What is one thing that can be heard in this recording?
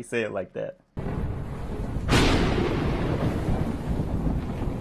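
A loud thunder crash rumbles and fades.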